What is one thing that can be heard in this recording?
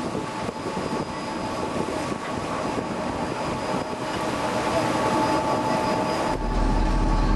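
Water churns and splashes against a boat's hull.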